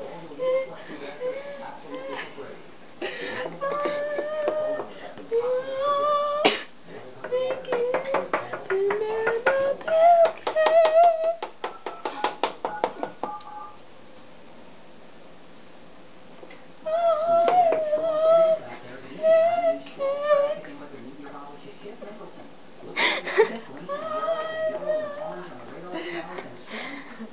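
Young women sing loudly and playfully close by.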